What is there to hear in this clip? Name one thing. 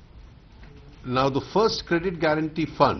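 A middle-aged man speaks calmly into microphones.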